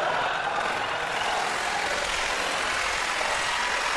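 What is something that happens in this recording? A young woman laughs heartily.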